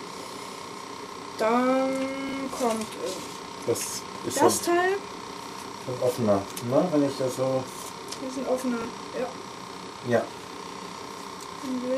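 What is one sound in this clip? A sheet of plastic rustles and crinkles.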